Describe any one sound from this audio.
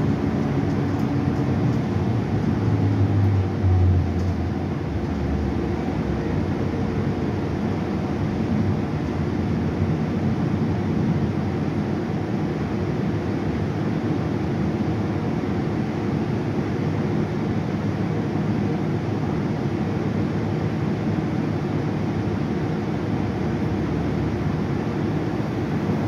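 The bus body rattles and hums over the road.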